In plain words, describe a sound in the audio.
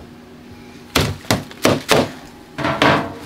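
A plastic tray clatters and knocks.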